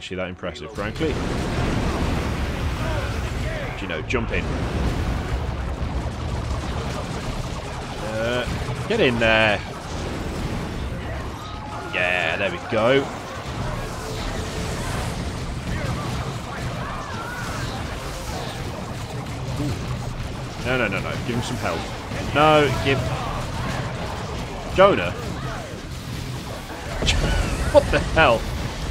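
Gunfire crackles and rumbles steadily during a battle.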